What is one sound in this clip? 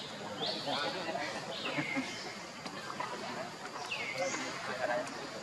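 Young monkeys squeal in short high cries.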